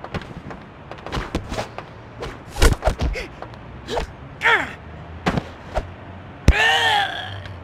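Punches and kicks thud in a fast fight.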